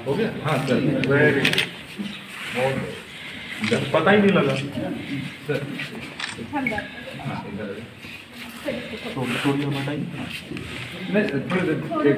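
Several men talk close by.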